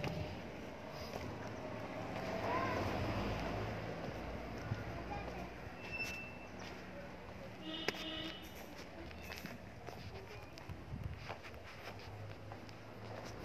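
Footsteps walk on paving.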